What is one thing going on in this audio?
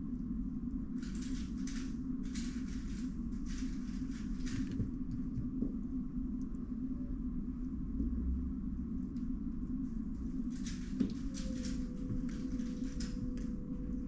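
Plastic puzzle cube layers click and rattle as they are turned quickly.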